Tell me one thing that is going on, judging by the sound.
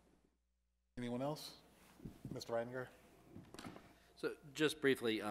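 A man speaks calmly through a microphone in a large room with some echo.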